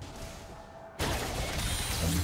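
Magic spell effects burst and crackle loudly in a video game battle.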